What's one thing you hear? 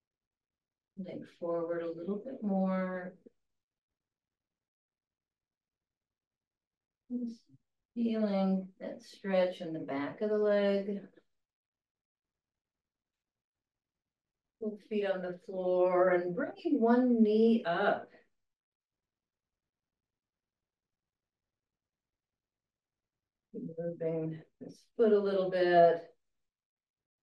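An elderly woman speaks calmly and clearly, as if giving instructions, heard close through a microphone.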